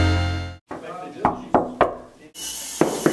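Knuckles knock on a wooden door.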